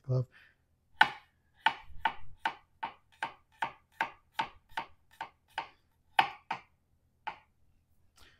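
A knife chops on a cutting board.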